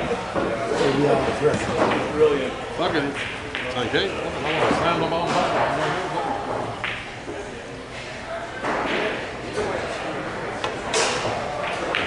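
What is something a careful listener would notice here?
Pool balls click sharply against each other.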